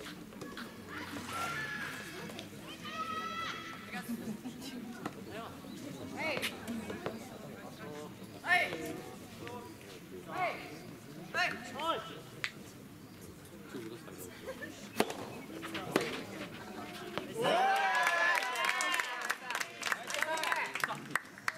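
Young players shout out calls across an outdoor court.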